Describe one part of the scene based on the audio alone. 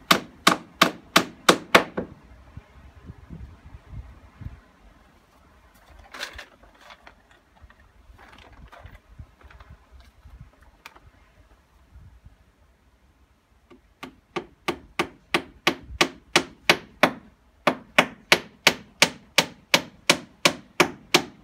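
A hammer taps quickly and steadily on metal or concrete.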